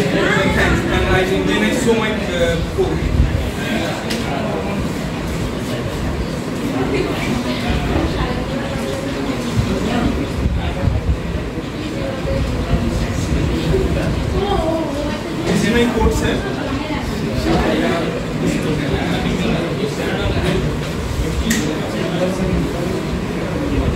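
A young man speaks calmly to a room, heard nearby.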